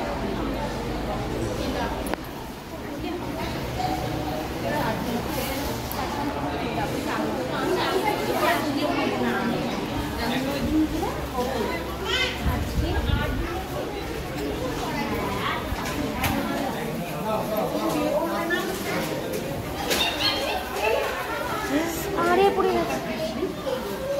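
Several men and women talk nearby and in the background.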